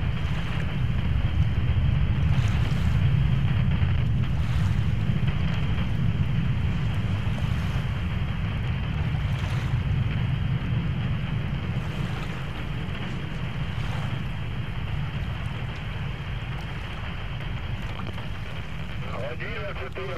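A low, steady rumble of engines drones throughout.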